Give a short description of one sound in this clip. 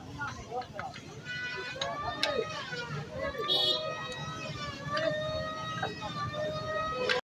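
Metal tools clink against a motorcycle engine.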